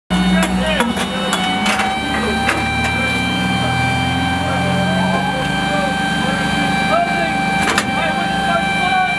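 An engine hums steadily inside a metal vehicle.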